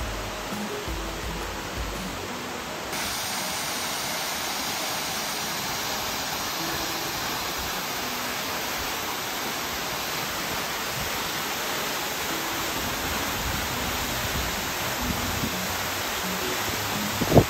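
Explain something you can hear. A waterfall rushes and splashes steadily into a pool.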